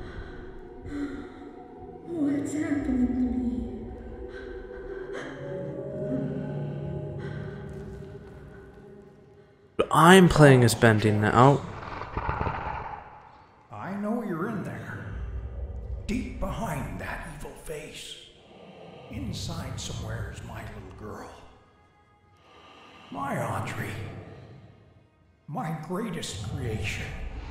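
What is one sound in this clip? A young man talks into a microphone, close by.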